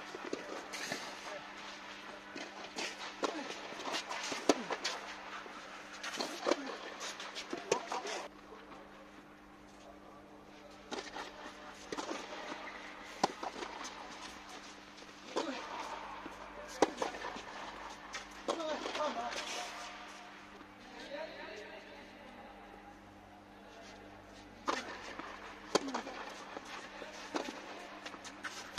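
Tennis rackets strike a ball back and forth in an echoing indoor hall.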